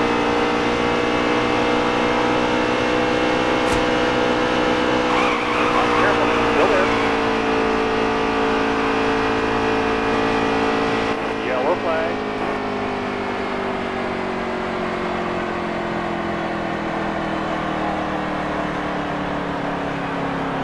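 A race truck engine drones loudly and steadily, slowly dropping in pitch.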